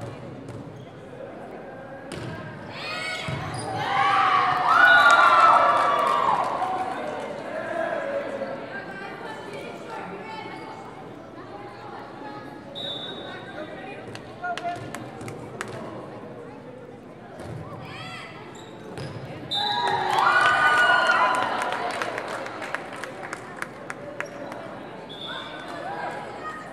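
A volleyball thumps off hands.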